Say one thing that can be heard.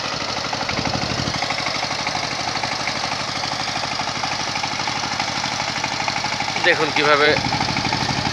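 A small diesel engine chugs steadily outdoors.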